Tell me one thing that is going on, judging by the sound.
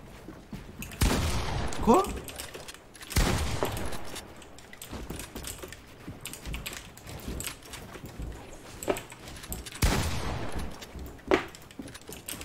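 Wooden walls thud and clatter sharply as they are built in a video game.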